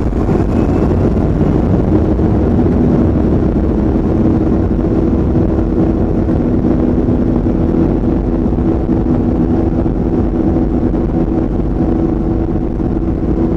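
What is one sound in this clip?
A plane's wheels rumble over the runway.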